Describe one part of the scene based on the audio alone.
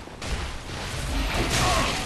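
Fire roars up in a short burst.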